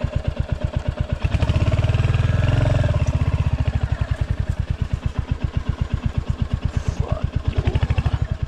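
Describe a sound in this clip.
A motorcycle engine thumps steadily at low speed, revving up briefly.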